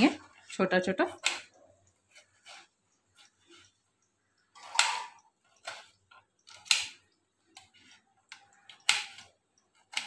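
A knife cuts through a tomato on a plate with soft taps.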